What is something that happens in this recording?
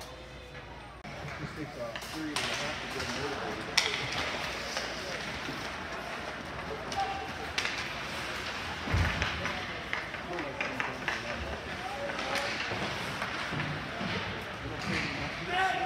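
Skates scrape and hiss across ice in a large echoing rink.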